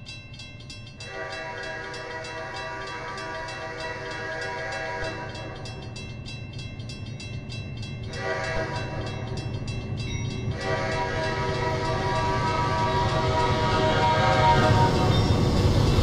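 A train horn blows in long loud blasts as a train approaches.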